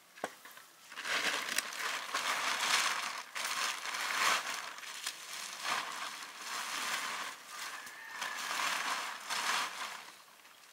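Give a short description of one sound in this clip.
A plastic sheet rustles and crinkles loudly as it is handled.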